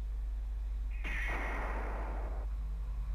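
A video game's magical whooshing burst swells and then fades.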